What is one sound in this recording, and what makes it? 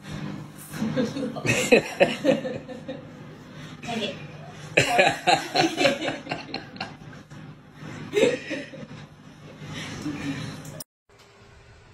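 Puppies growl while tugging at a cloth.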